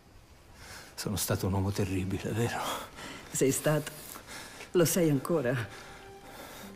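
A man speaks weakly and hoarsely, close by.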